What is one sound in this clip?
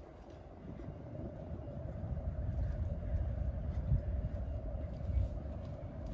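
Footsteps pass by on paving.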